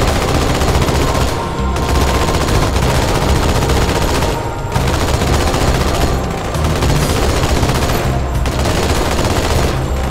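A turret gun fires rapid bursts that echo loudly.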